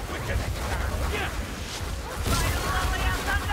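A magic staff fires a hissing, crackling beam.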